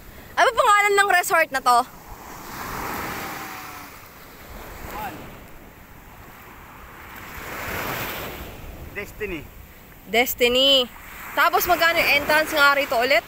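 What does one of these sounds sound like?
Waves wash up onto a beach and break in swells.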